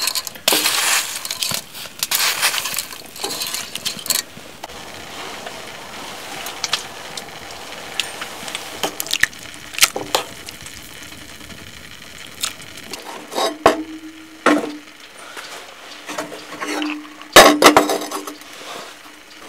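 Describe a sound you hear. Water bubbles and simmers in a pot.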